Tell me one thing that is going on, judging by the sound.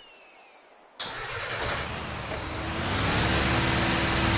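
A heavy truck engine starts up and rumbles, revving higher.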